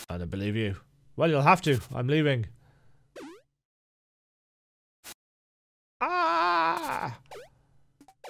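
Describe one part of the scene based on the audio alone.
Short electronic blips and chirps sound in quick bursts.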